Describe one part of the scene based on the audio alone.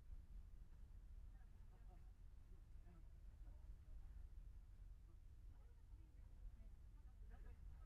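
A car drives slowly past nearby.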